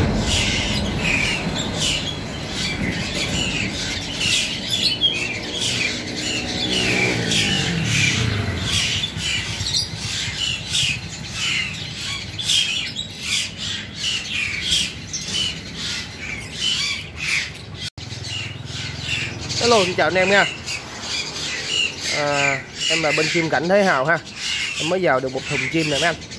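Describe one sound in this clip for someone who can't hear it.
Small birds chirp and twitter rapidly close by.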